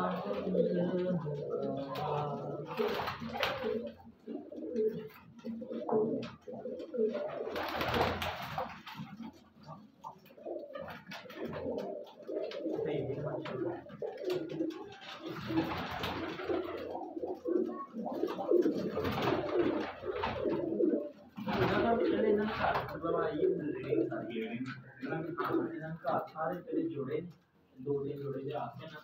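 Many pigeons coo steadily close by.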